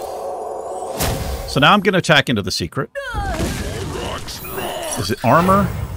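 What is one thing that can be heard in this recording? Magical game effects whoosh and chime.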